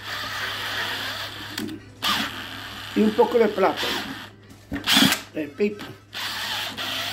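An electric drill with a paddle whirs, stopping and starting as it churns thick wet plaster.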